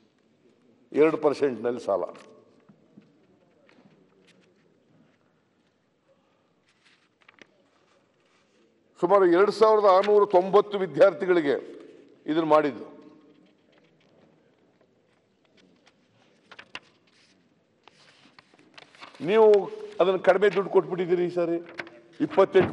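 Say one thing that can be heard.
An elderly man speaks slowly through a microphone, with long pauses.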